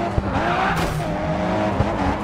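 A car scrapes and grinds along a metal barrier.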